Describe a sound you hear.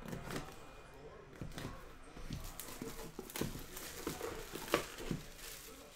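Plastic wrap crinkles as hands peel it off a box.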